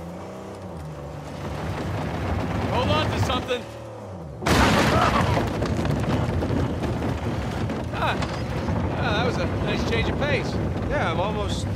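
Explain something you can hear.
A jeep engine rumbles steadily.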